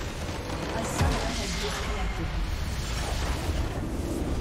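A large game structure shatters with a deep, booming blast.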